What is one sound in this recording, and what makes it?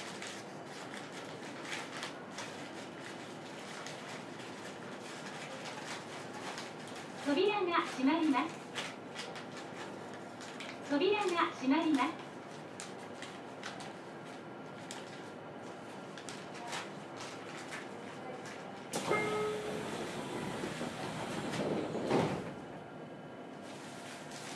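An electric train hums and rattles along a track.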